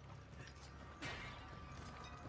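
A clay pot shatters.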